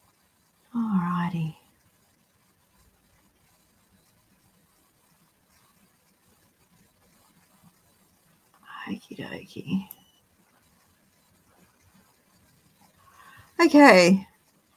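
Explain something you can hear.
An elderly woman speaks calmly in short bursts through an online call.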